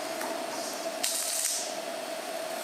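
Small nails rattle in a plastic box.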